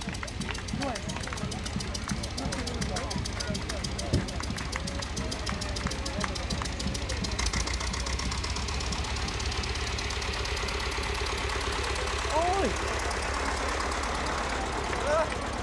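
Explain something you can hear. An old tractor engine chugs steadily as the tractor rolls by.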